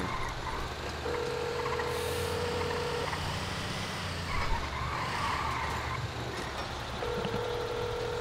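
A phone call rings with a steady beeping tone.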